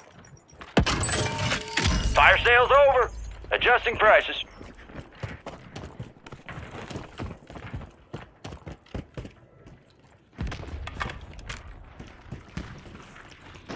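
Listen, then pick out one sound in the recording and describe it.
Footsteps thud quickly on dirt and concrete.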